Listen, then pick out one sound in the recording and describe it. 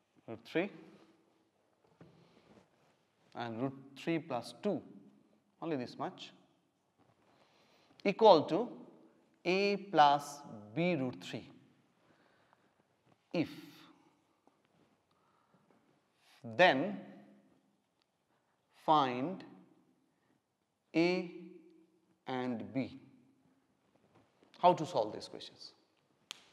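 A middle-aged man speaks calmly and clearly in short phrases, close by in a slightly echoing room.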